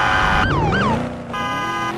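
A police siren wails briefly.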